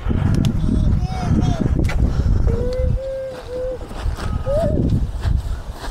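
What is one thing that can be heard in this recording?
A small child babbles and calls out in a high voice nearby.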